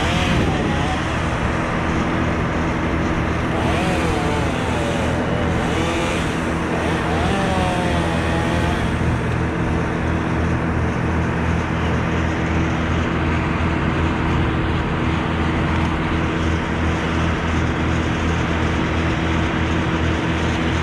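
A chainsaw engine idles steadily close by.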